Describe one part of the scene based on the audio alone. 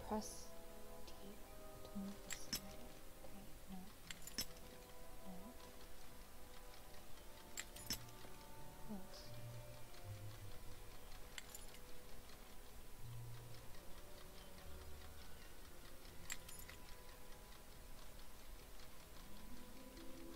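Small metal clicks of a lock pick sound at intervals.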